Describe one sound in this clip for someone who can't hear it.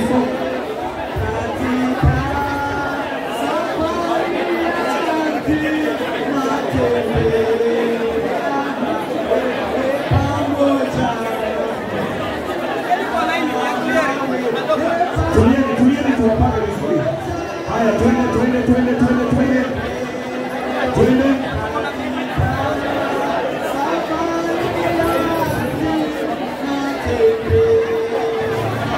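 A large crowd murmurs and talks indoors.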